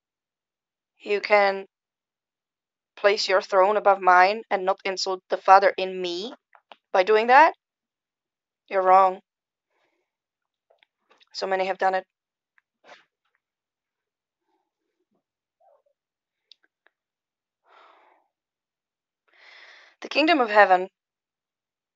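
A woman speaks calmly in short bursts close to the microphone.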